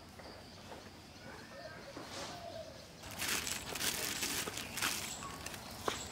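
Water pours from a bucket into a metal bowl.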